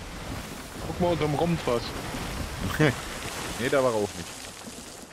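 A man speaks with animation into a microphone, close up.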